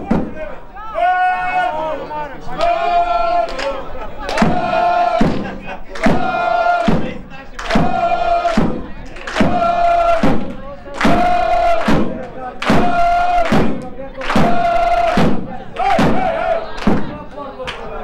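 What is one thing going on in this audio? A crowd of spectators chants loudly in rhythm outdoors.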